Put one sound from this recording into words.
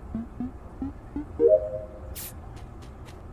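Electronic button presses beep and click.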